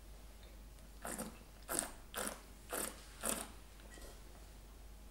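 A man sips and slurps wine.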